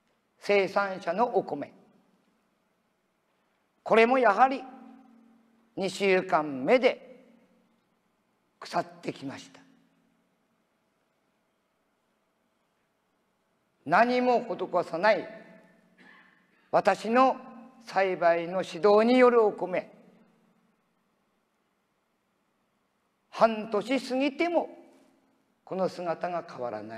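An elderly man speaks calmly in pauses through a microphone in a large hall.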